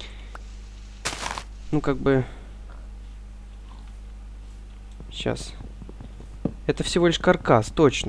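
Dirt crunches as a shovel digs into it.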